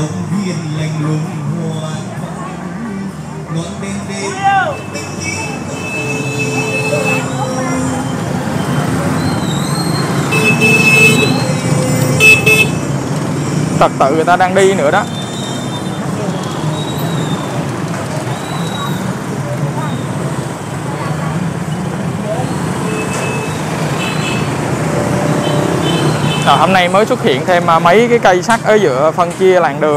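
Motorbike engines hum and buzz steadily all around on a busy street.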